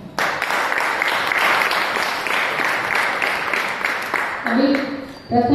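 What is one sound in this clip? A group of people applauds loudly.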